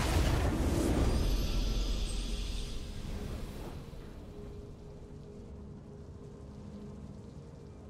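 A triumphant game fanfare swells.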